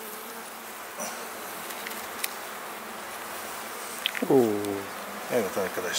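A wooden hive frame scrapes and creaks as it is pried loose and lifted.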